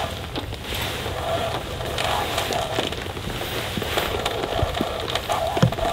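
Mesh fabric rustles as it is hung and pulled.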